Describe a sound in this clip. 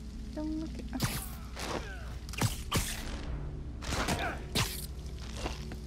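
Heavy punches and kicks land with loud thuds.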